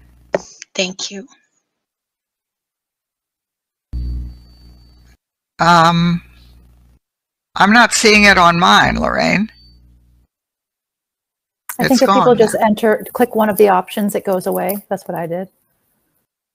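An elderly woman speaks with animation through an online call, with pauses between phrases.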